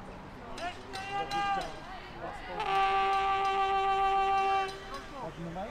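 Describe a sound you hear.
A referee blows a whistle sharply outdoors.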